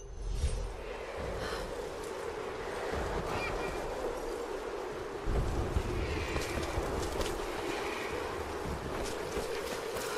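A young woman speaks softly and whispers close by.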